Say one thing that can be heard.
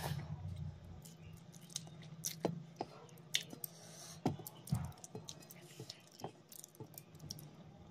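Fingers squish and mix rice on a plate.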